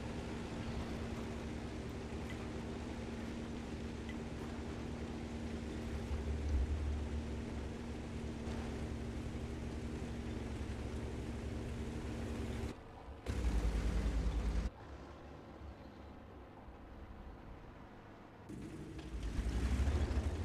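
A tank engine rumbles and its tracks clatter.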